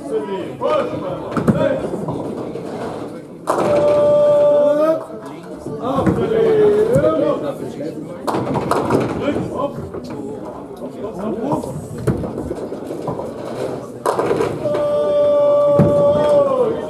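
Heavy balls rumble down wooden lanes.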